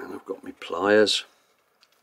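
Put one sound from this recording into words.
A crimping tool clicks shut on a wire connector.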